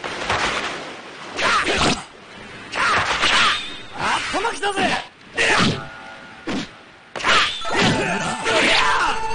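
Swords swish and clang with sharp hits in bursts.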